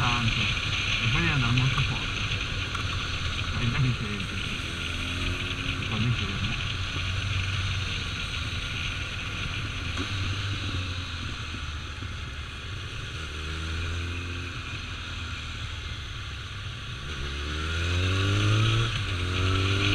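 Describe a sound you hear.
A motorcycle engine hums steadily up close, rising and falling in pitch as it changes speed.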